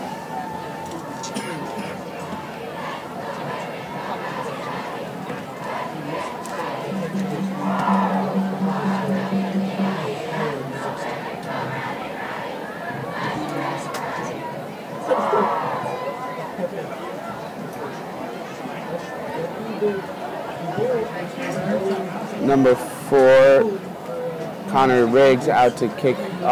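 A large outdoor crowd murmurs and cheers from the stands.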